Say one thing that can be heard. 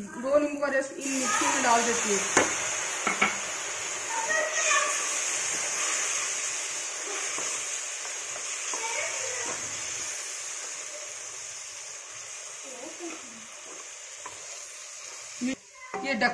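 Food sizzles and hisses in a hot pan.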